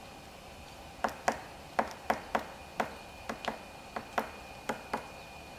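A woodpecker pecks at a tree trunk.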